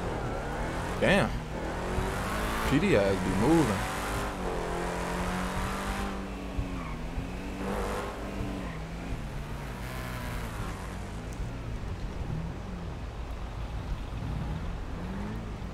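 A car engine hums and revs as the car drives.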